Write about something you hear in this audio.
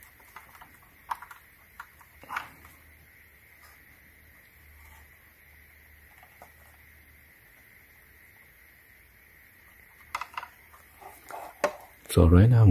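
Plastic parts click and rattle softly as a battery pack is handled.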